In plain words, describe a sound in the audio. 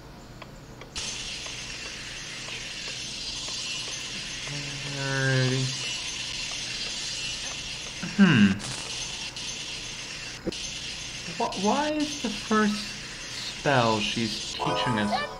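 A soft magical shimmer hisses steadily.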